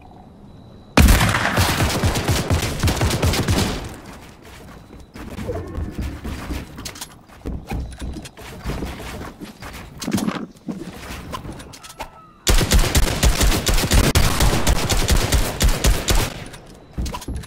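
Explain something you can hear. Wooden building pieces clatter rapidly into place.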